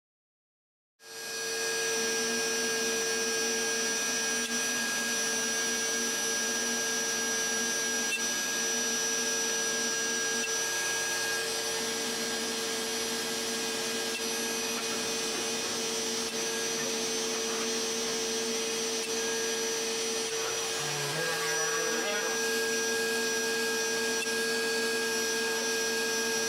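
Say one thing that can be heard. A router spindle whines steadily as it cuts into wood.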